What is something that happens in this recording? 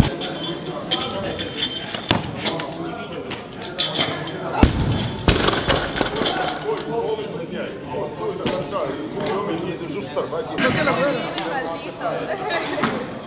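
A crowd of people chatter and call out.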